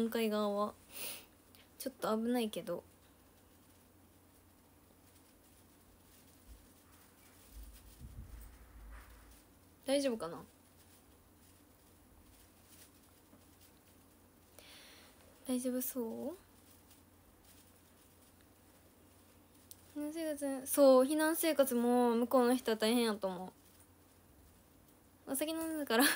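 A young woman speaks softly and close to a microphone, in short bursts with pauses.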